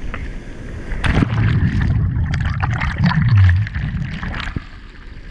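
Foamy waves churn and wash close by.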